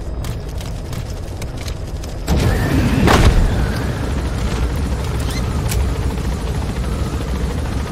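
A helicopter's engine and rotors roar steadily close by.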